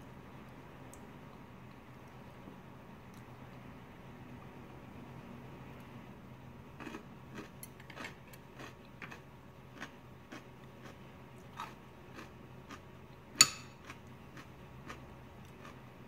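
A metal spoon clinks and scrapes against a ceramic bowl.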